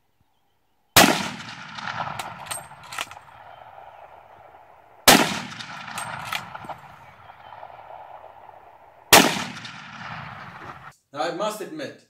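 A shotgun fires loudly outdoors, with a long echoing rumble.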